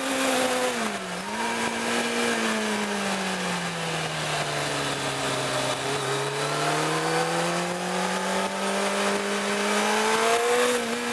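A small car engine hums steadily from inside, rising and falling in pitch as the car changes speed.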